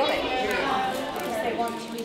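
Craft supplies rustle and clatter in plastic baskets.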